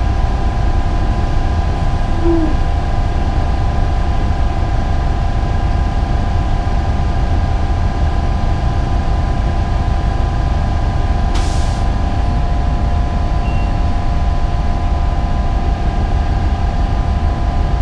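Bus tyres roll over the street.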